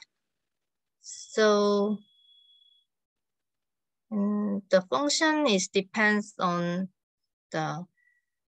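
A young woman speaks calmly into a close microphone, as in an online lecture.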